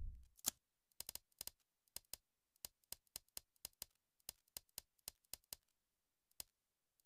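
Soft menu clicks tick over and over as options are selected.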